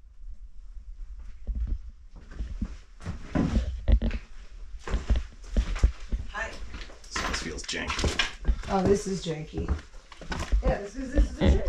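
Footsteps knock and creak on wooden floorboards.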